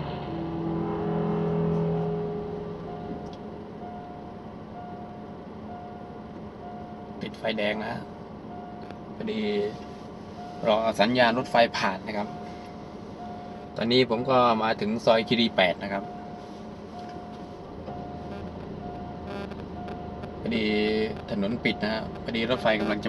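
A railway crossing warning bell rings steadily.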